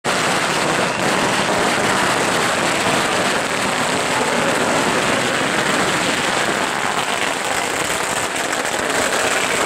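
Firecrackers crackle continuously nearby.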